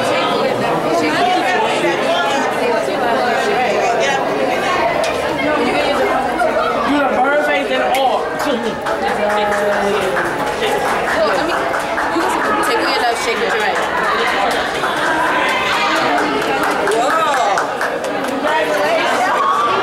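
A crowd of young women chatter and laugh loudly in an echoing hallway.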